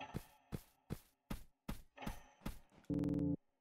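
Short electronic blips tick in a steady rhythm.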